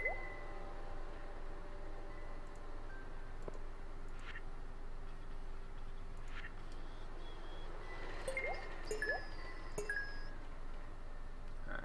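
Soft game menu blips and chimes sound as items are selected.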